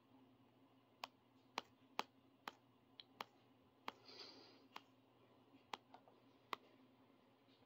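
Quick electronic clicks tick in a game.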